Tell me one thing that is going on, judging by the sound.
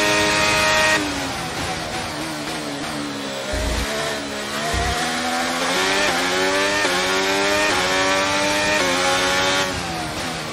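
A racing car engine drops sharply in pitch as the car brakes and shifts down, then climbs again.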